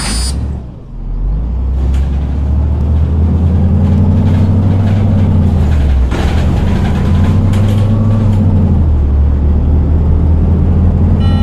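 A bus engine drones and rises in pitch as the bus speeds up.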